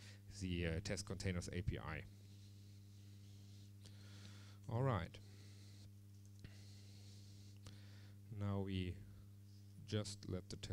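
A man speaks into a microphone in short bursts, with pauses.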